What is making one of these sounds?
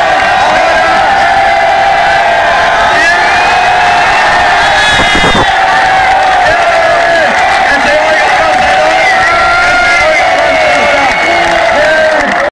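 A large crowd cheers and screams loudly and without a break, close by and distorted, outdoors.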